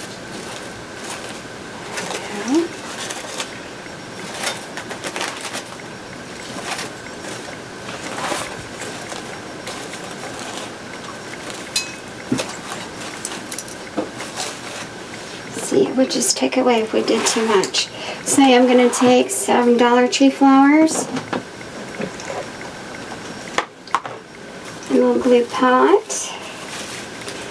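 Plastic mesh ribbon rustles and crinkles as it is handled.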